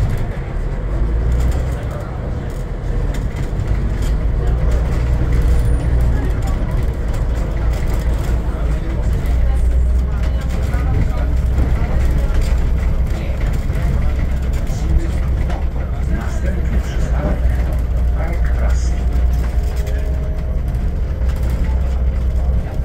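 Tyres rumble over cobblestones.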